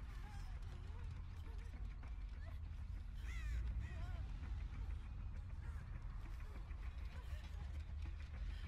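Footsteps run quickly over grass and soft ground.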